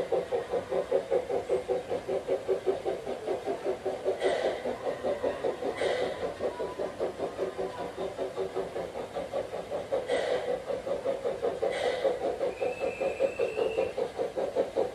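A small model train rolls along its track with a quick, steady rhythmic chugging.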